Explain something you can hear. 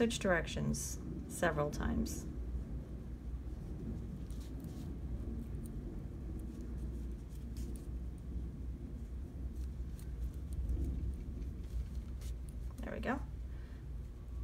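Yarn softly rustles as it is pulled through knitted fabric.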